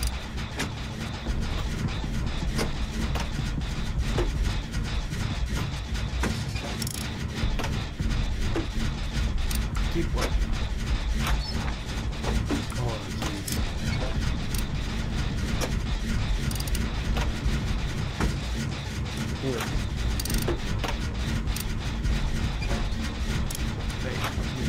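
Sharp mechanical clicks and ratchets sound close by.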